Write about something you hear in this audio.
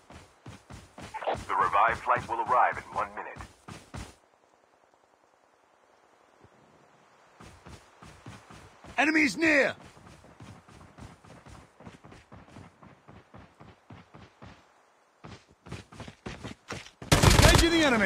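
Footsteps thud quickly through grass.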